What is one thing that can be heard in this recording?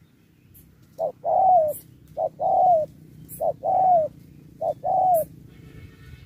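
A dove coos close by in a repeated two-part call.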